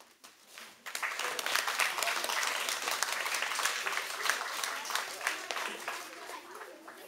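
Many children's feet stamp and patter on a wooden floor in an echoing hall.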